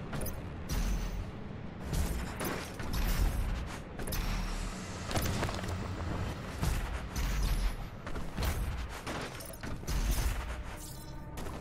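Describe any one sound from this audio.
A heavy gun fires in loud, booming blasts.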